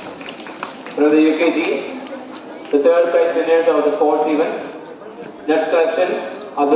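A man speaks loudly over a loudspeaker in an echoing hall.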